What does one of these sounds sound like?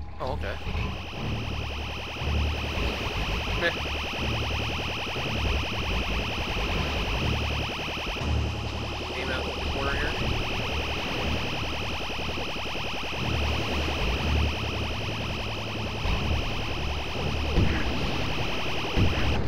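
Laser guns zap in rapid bursts.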